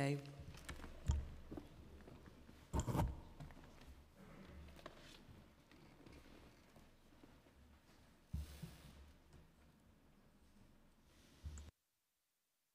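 Men murmur quietly in a large room.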